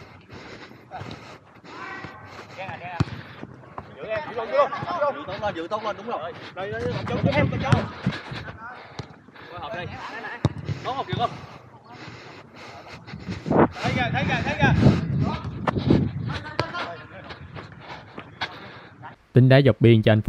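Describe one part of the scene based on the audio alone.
Young men call out to each other outdoors during a football match.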